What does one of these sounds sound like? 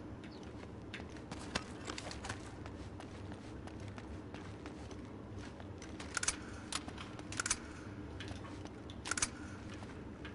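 Footsteps scuff across stone.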